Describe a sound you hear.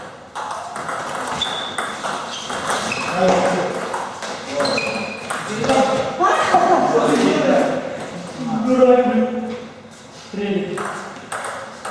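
A table tennis ball clicks back and forth between paddles and the table.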